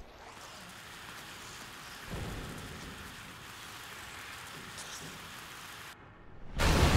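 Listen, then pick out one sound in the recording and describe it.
Sparks crackle and fizz.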